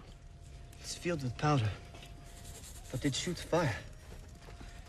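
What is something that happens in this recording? A man speaks quietly and intently.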